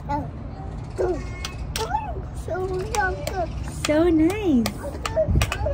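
A toddler babbles and coos.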